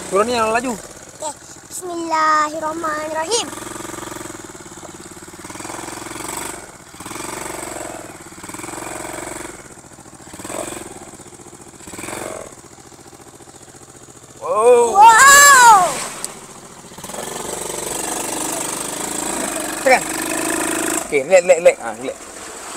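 A quad bike engine revs as it drives over bumpy dirt.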